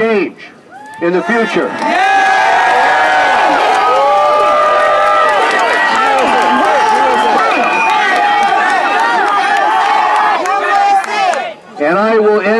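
A crowd outdoors shouts and chants loudly.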